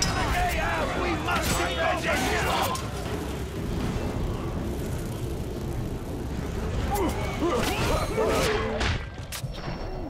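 Metal blades clash and strike in a close fight.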